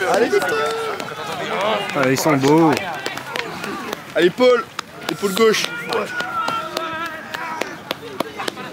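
Men and boys shout and cheer outdoors nearby.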